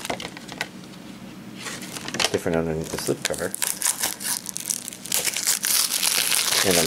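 Plastic disc cases click and rattle as hands handle them.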